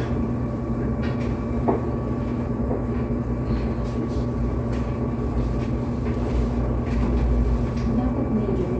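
Laundry rustles and knocks faintly.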